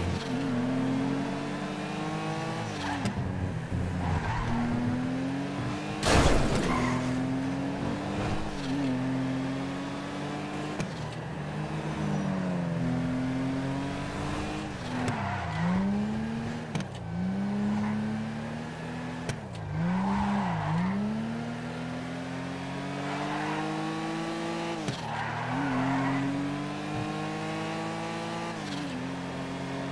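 A car engine revs up and down as gears shift.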